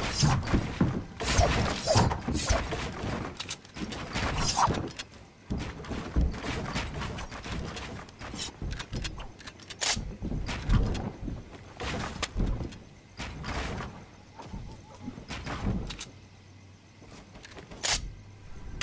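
Wooden walls and ramps snap quickly into place with sharp knocks.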